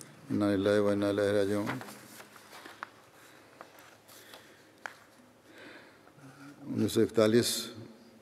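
An elderly man recites in a slow, chanting voice through a microphone.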